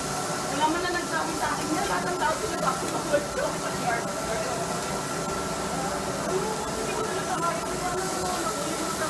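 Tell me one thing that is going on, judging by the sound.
Metal tongs clink against metal bowls.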